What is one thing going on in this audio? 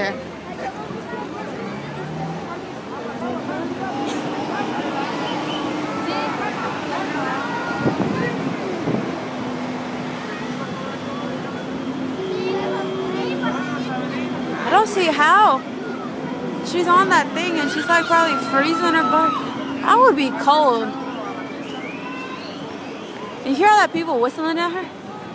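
A large crowd murmurs and chatters outdoors.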